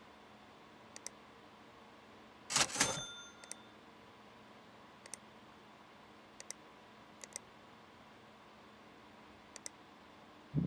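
Soft interface clicks tick now and then as menu items are picked.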